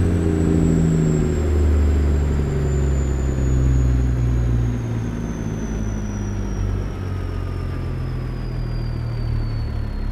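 A large truck engine idles with a deep, steady rumble.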